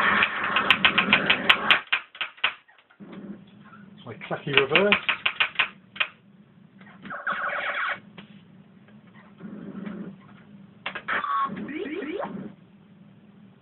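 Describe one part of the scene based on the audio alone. An arcade game fires rapid electronic zaps.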